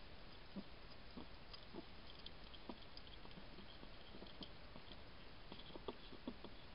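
A hedgehog munches food with soft wet clicks.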